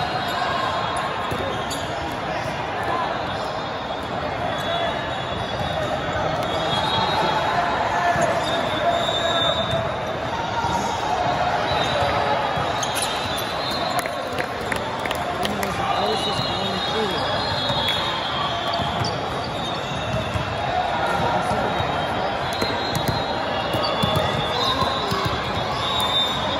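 A large crowd chatters throughout a big echoing hall.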